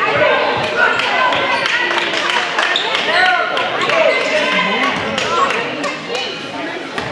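A crowd of spectators chatters and shouts in a large echoing gym.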